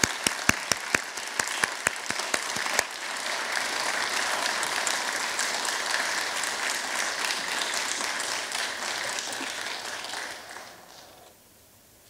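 An audience applauds in a large hall, then falls quiet.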